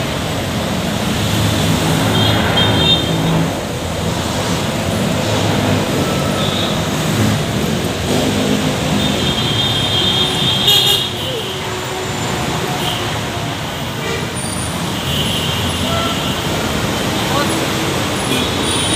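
Steady street traffic rumbles nearby outdoors.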